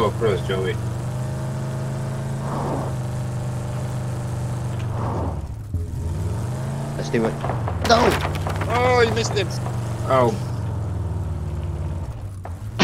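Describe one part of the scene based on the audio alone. A vehicle engine drones steadily, its pitch dipping and rising briefly.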